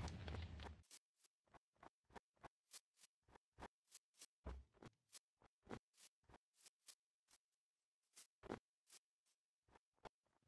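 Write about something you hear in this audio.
Footsteps crunch on snow in a rapid, steady rhythm.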